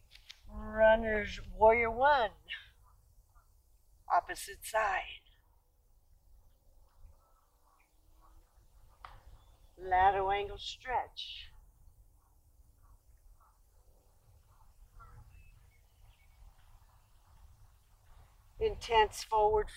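A woman speaks calmly, giving instructions in short phrases.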